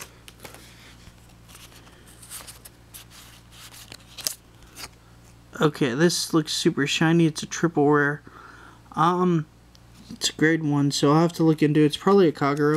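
Trading cards rustle and flick against each other in someone's hands.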